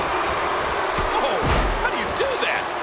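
A wrestler slams onto the ring mat with a heavy thud.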